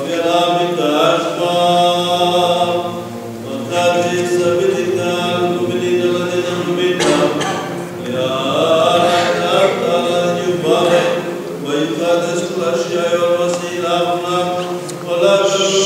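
A choir of men chants together in a large echoing hall.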